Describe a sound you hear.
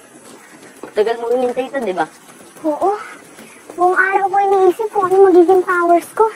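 A child speaks eagerly, close by.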